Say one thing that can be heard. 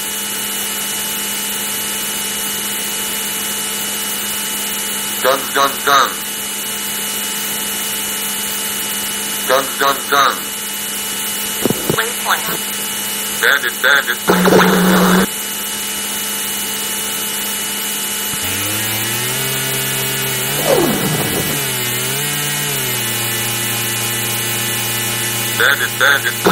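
A fighter jet engine in an old computer game drones without a break.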